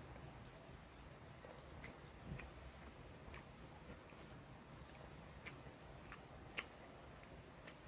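A man chews and eats food.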